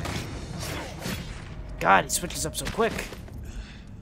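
Steel swords clash and strike in a fight.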